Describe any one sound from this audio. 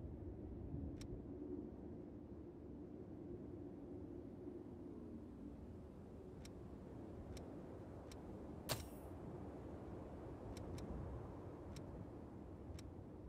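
Short soft menu clicks tick now and then.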